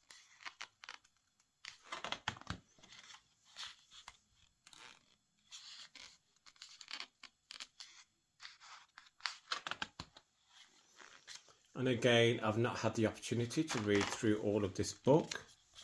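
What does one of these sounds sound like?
Pages of a large book rustle and flap as they are turned by hand.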